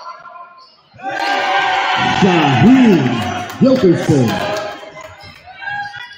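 A crowd cheers loudly in a large echoing gym.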